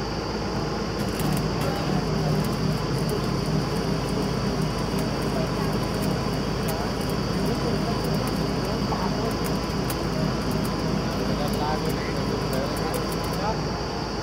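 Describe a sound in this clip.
Metal clanks and ticks sharply on the drilling rig.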